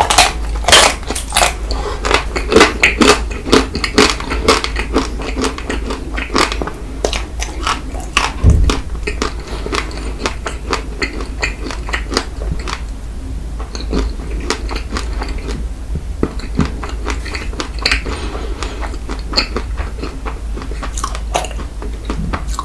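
A man chews and smacks his lips wetly close to a microphone.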